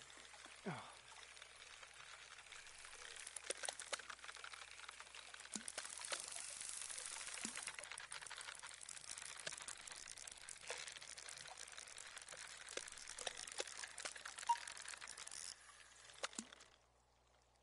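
Water splashes as a hooked fish struggles.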